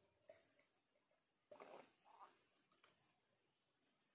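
A middle-aged woman gulps down a drink.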